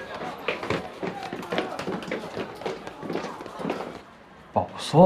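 Young women chat with animation nearby.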